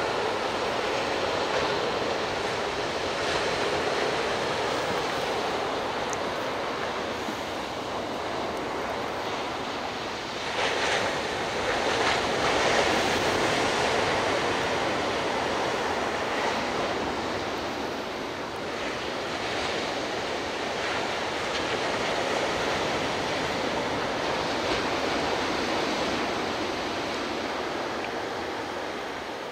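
Waves break and wash steadily onto a beach in the distance.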